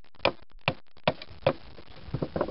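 A hatchet chops into wood with sharp knocks.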